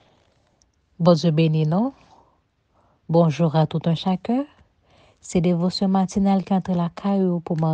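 A woman sings slowly in held notes, close to a microphone.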